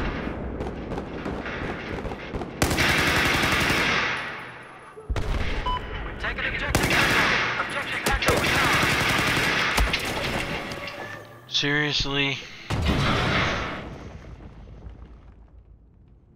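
Gunfire and explosions from a video game crash and rumble.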